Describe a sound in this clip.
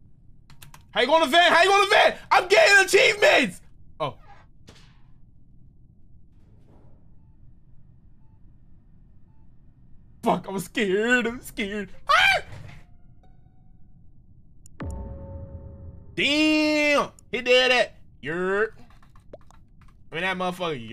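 A young man talks and exclaims with animation, close to a microphone.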